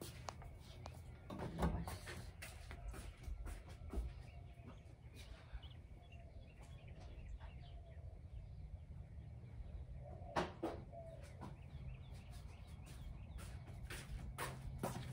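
Footsteps shuffle across a floor.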